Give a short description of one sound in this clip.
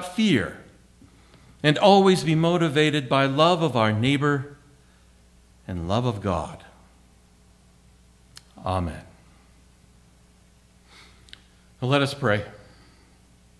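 A middle-aged man speaks with emphasis into a microphone, with pauses between phrases.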